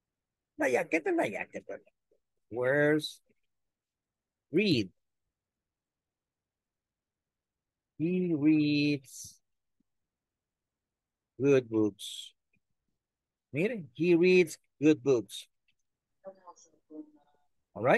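A man speaks slowly and clearly, reading out words over an online call.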